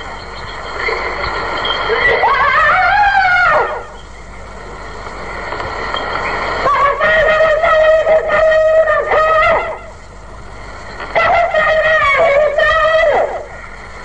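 An elderly man chants melodiously into a microphone, in long sung phrases.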